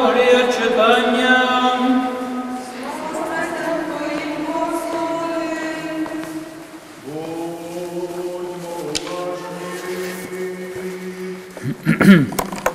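A man chants a prayer in a sung voice, echoing in a large hall.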